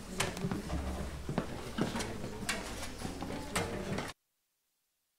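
An audience claps in a large hall.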